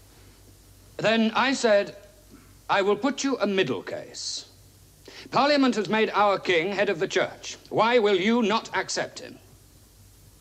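A young man speaks loudly and forcefully in a large hall.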